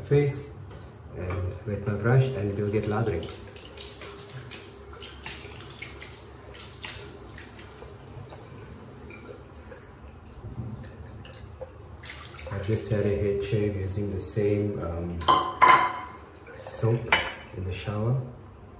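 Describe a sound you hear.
A man speaks calmly and close by, in a small room with hard, echoing walls.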